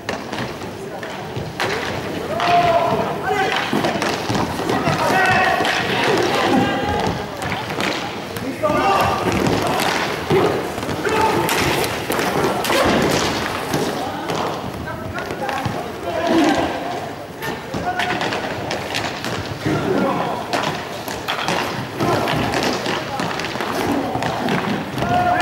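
Hockey sticks clack against a ball and against each other.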